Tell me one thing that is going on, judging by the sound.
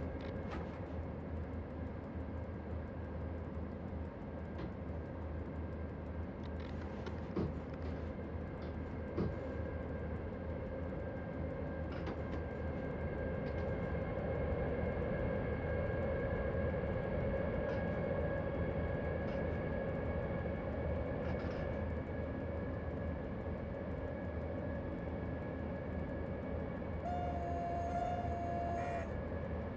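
An electric locomotive hums and rumbles steadily as it runs along the rails.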